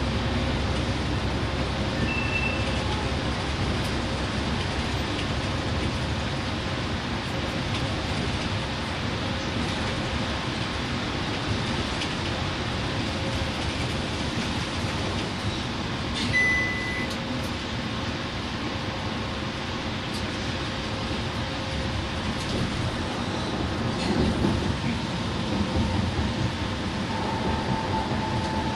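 A bus engine hums steadily as the bus drives along a highway.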